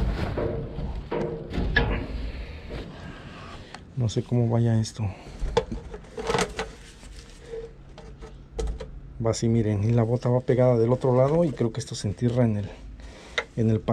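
Items thump and clatter as they are moved about.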